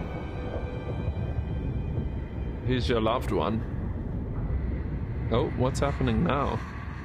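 A deep rumbling whoosh plays steadily.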